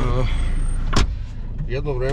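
A car door slams shut nearby.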